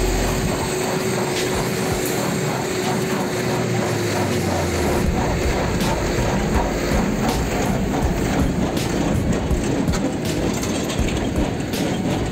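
A baler machine clatters and thumps as it packs straw.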